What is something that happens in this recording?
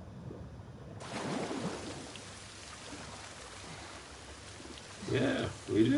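Water splashes as a swimmer paddles at the surface.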